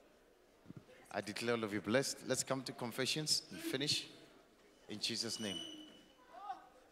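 A man speaks loudly and forcefully into a microphone.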